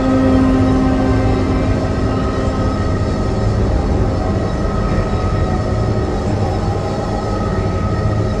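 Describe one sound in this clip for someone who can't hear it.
A magical glow hums and shimmers steadily.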